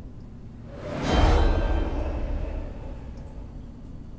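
A magical whoosh swells suddenly and fades away.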